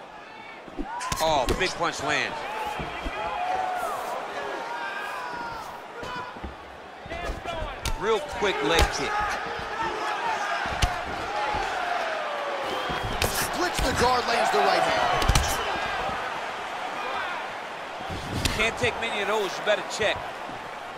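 Punches and kicks thud against a body.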